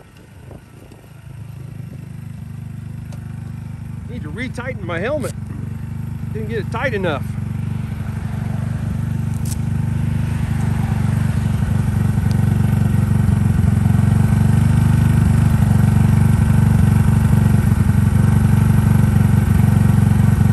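A motorcycle engine idles with a low, steady rumble that grows louder.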